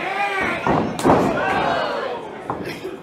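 A hand slaps hard on bare skin.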